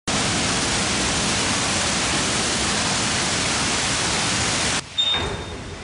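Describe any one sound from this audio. Water pours and splashes heavily over a turning water wheel.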